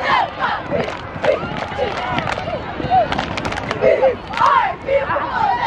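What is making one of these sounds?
Hands clap sharply in quick bursts.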